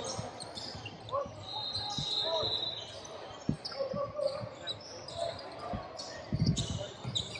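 A basketball bounces on a wooden court, echoing in a large hall.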